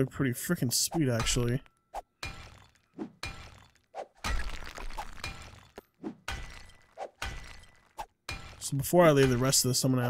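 A pickaxe strikes rock with sharp knocks.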